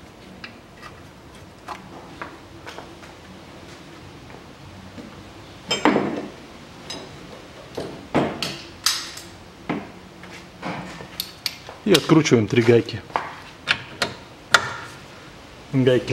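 A socket wrench clicks against a metal bolt.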